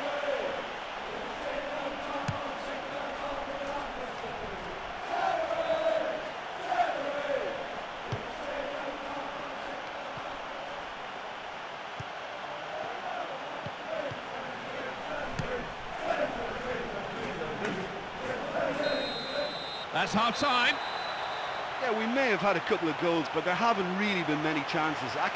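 A large crowd murmurs and cheers steadily in a stadium.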